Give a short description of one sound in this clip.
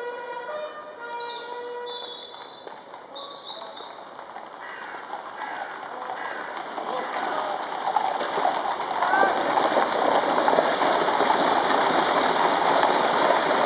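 Horses' hooves clop on a paved road.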